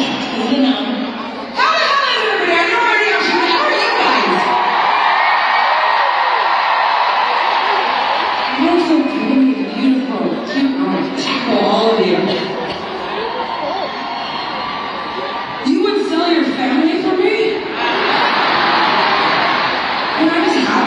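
A huge crowd cheers and sings along, echoing around a stadium.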